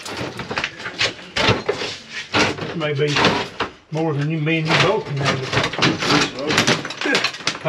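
Hands knock and scrape against loose wall tiles.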